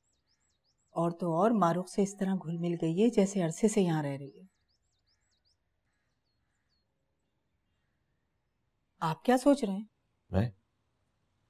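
A middle-aged woman speaks calmly and firmly nearby.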